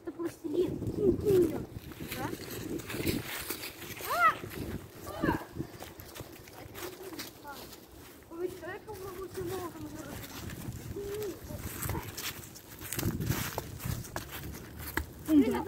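Young boys call out to each other with animation outdoors.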